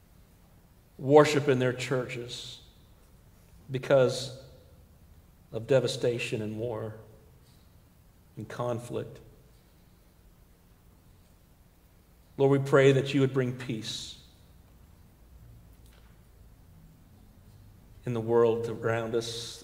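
A man speaks calmly through a microphone, in phrases with pauses, in an echoing hall.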